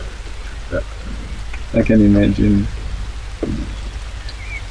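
A man speaks calmly nearby, outdoors.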